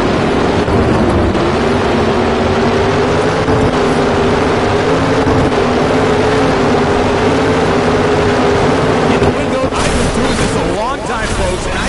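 A race car engine roars loudly at high speed.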